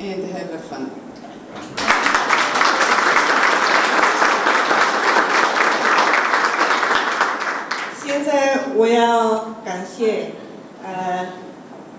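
An older woman speaks warmly into a microphone.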